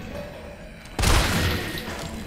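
A shotgun fires with a loud blast.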